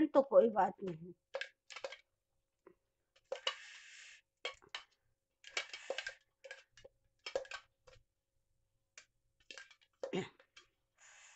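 A spatula scrapes and taps against a metal jar.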